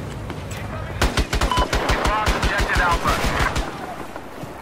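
A machine gun fires in a rapid burst.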